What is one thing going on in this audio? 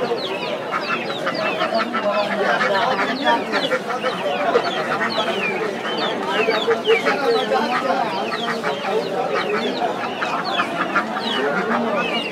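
Chickens cluck and squawk constantly close by.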